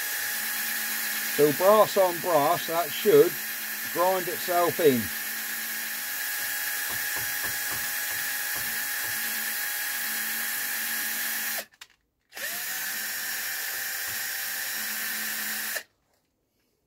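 A cordless drill whirs steadily, stopping and starting again.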